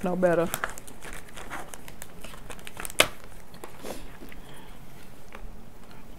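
A plastic wrapper crinkles and rustles up close.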